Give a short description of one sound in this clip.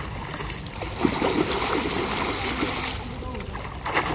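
Water splashes as a swimmer kicks.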